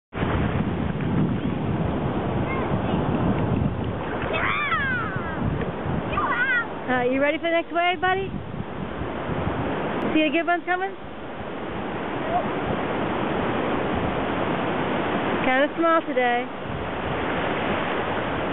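Shallow waves wash and churn steadily.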